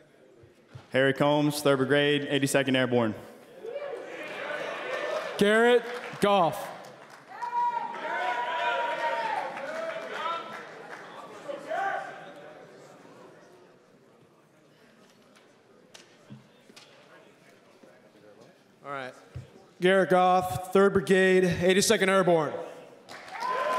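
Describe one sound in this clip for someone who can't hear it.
A man announces loudly through a loudspeaker in a large echoing hall.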